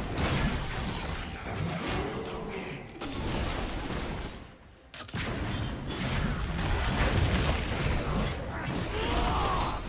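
Swords and blows clang in a busy melee.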